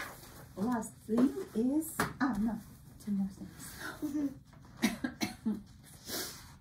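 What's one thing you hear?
A woman speaks calmly and kindly close by.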